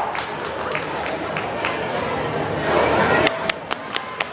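Feet thud on a wooden balance beam as a gymnast lands a leap.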